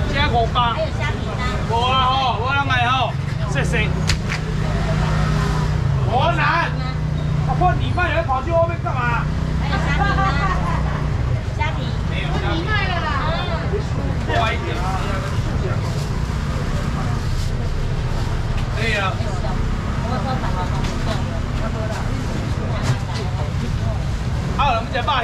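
A crowd murmurs and chatters in a busy market.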